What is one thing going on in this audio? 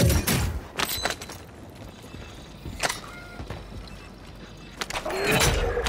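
Short metallic clicks sound as gear is picked up.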